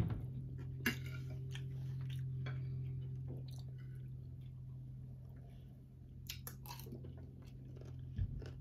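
A fork scrapes and clinks against a plate.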